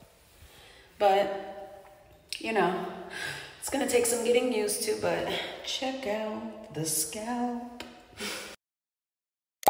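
A young woman sings close to a phone microphone.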